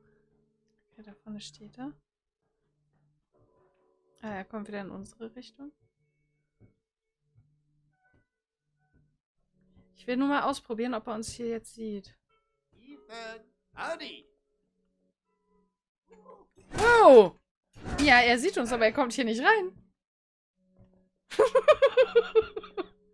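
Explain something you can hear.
A young woman talks and laughs close to a microphone, with animation.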